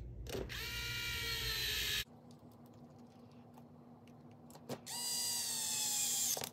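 An electric screwdriver whirs in high, whining bursts.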